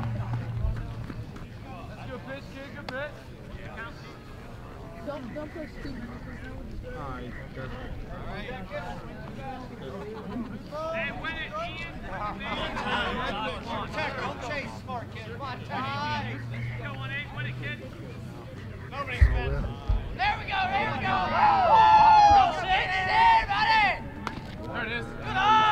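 Voices of players and spectators call out outdoors.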